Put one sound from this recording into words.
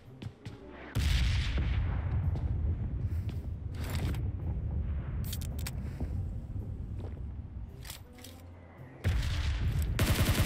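Quick footsteps thud across the ground in a video game.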